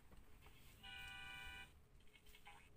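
A bright jingle of chimes rings out briefly.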